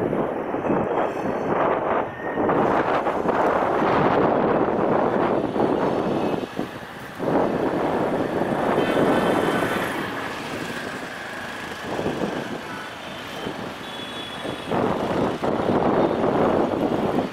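Train wheels clatter over rail joints and points.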